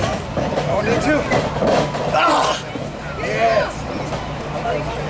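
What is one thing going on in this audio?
Men shout from close by.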